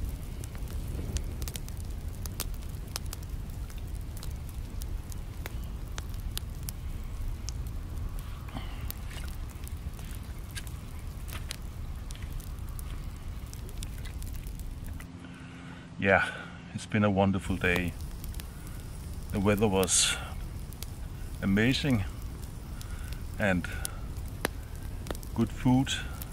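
A small wood fire crackles close by.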